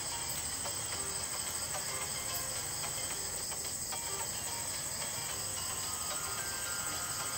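A small motor rickshaw's engine hums steadily as it drives.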